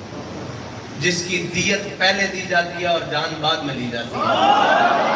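A man speaks forcefully into a microphone through a loudspeaker.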